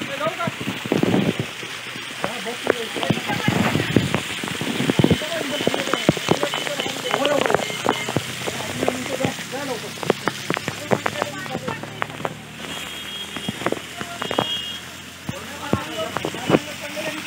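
Water splashes and patters steadily onto rocks.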